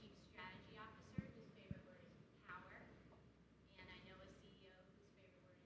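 A man speaks calmly into a microphone, heard through a loudspeaker in a room.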